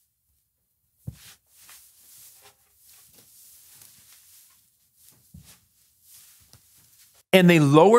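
Paper cutouts rustle softly against a board.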